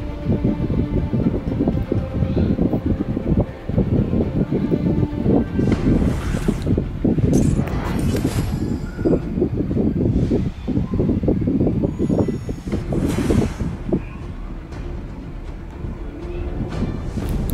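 Game sound effects of blows and magic blasts clash in quick bursts.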